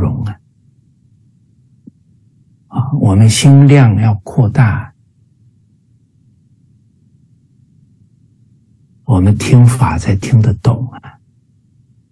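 A middle-aged man speaks calmly and clearly into a microphone over an online call, with long pauses.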